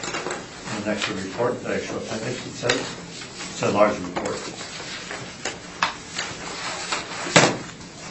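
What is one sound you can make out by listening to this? An adult speaks calmly in a small room, heard through a distant microphone.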